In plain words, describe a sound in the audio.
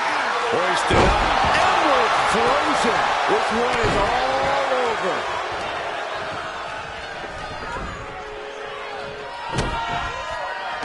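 Bodies thud against the ring mat during grappling.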